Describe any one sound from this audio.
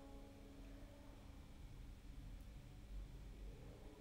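A flute plays a soft, sustained melody in a large echoing hall.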